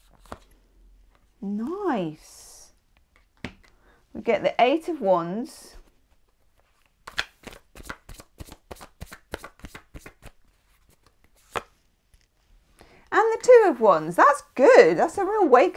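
A playing card is laid down on a hard surface with a soft tap.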